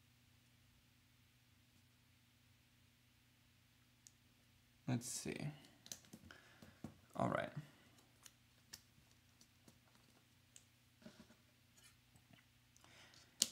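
Paper rustles softly as it is handled and pressed.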